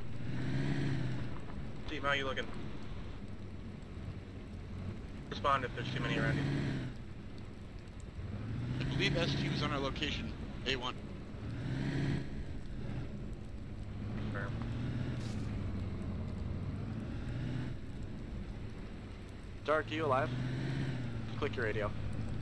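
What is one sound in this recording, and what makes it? A car engine hums and revs up and down as it drives over rough ground.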